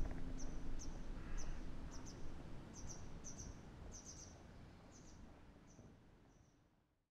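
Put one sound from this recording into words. Water ripples and laps softly as an animal swims.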